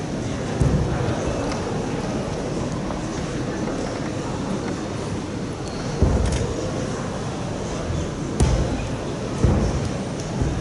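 Feet thump softly on a padded floor now and then.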